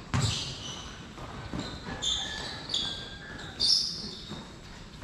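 Footsteps patter on a hard court.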